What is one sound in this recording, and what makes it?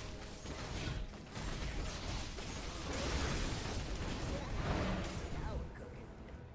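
Magic blasts whoosh and crackle in a busy fantasy battle.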